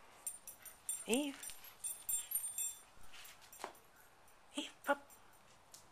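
A dog gives short, high whines.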